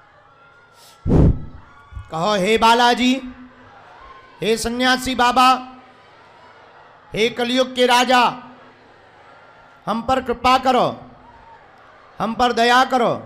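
A young man sings in phrases into a microphone, heard through loudspeakers.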